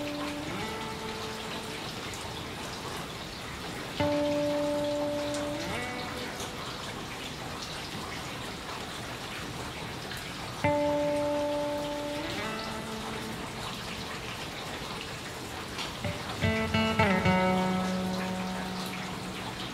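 A vehicle horn plays a short musical tune, again and again.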